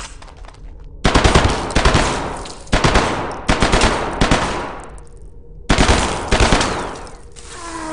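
Gunshots boom loudly and echo.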